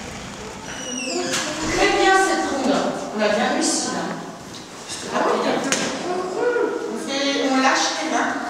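A woman speaks with animation to children.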